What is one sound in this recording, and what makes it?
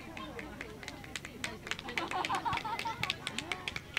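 Children clap their hands in quick bursts.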